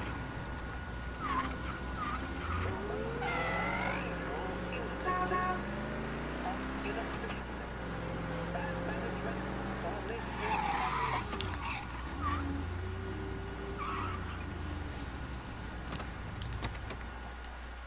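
A car engine hums and revs as the car drives along.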